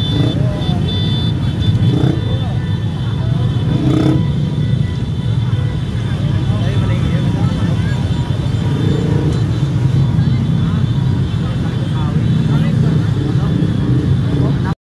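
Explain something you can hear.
Many motorcycle engines rumble and idle close by.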